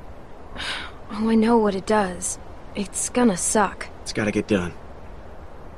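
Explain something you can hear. A young girl answers with a wry, resigned tone.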